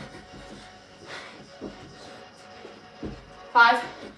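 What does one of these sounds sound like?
Feet thud softly on a carpeted floor.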